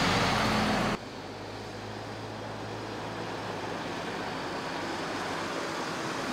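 A truck engine idles at low speed.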